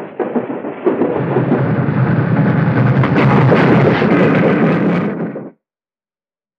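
A steam locomotive rumbles and chugs loudly past.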